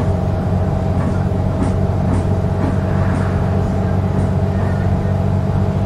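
A car passes by the other way.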